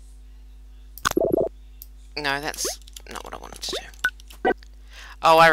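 Short game blips pop as blocks are placed.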